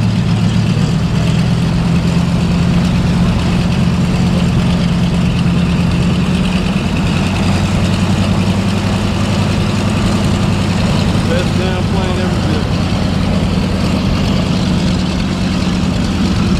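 A propeller plane's engines rumble steadily in the distance.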